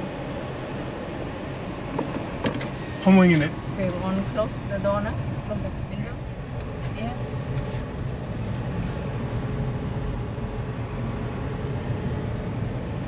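Tyres hum on an asphalt road, heard from inside a moving car.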